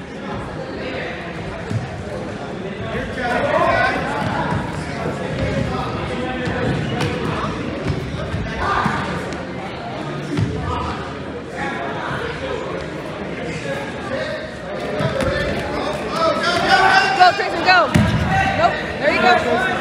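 Wrestlers' shoes squeak and thud on the mat.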